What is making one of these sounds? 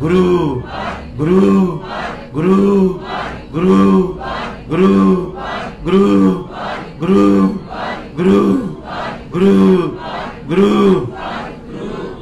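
A middle-aged man sings a slow, repeating chant through a microphone.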